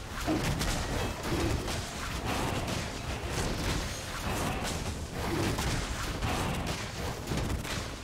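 Game sound effects of spells and blows clash and whoosh in quick bursts.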